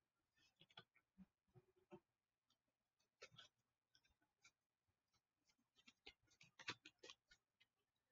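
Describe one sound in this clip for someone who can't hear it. Plastic packaging crinkles in a man's hands.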